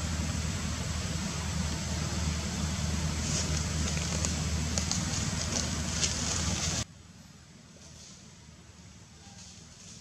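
Dry leaves rustle and crunch as monkeys walk about.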